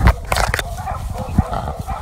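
A dog rustles through dry leaves and undergrowth.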